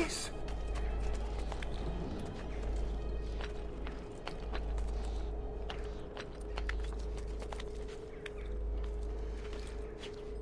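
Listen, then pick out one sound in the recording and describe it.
Hands scrape and thump against a stone wall while climbing.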